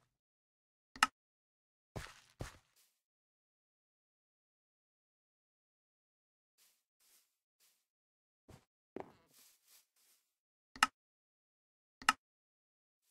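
A sharp click sounds a few times.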